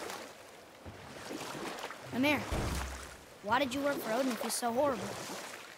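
A small boat glides through calm water with soft splashing.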